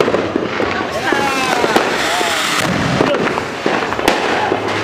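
A fountain firework roars and sprays sparks.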